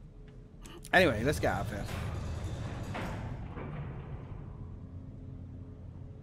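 A lift rumbles and creaks as it moves.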